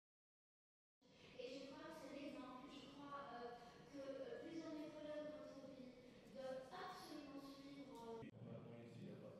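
A young woman speaks steadily into a microphone in a large echoing hall.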